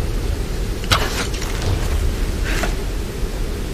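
A rope zips taut through the air.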